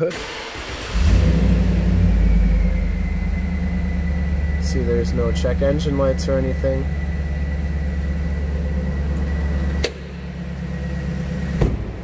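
A car engine starts and idles with a steady low rumble.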